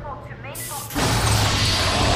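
A large airlock door hisses open.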